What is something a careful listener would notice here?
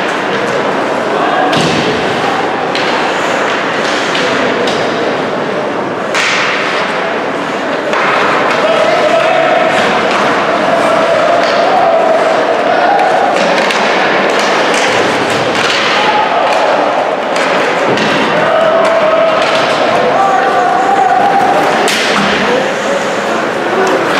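Skates scrape and carve across the ice.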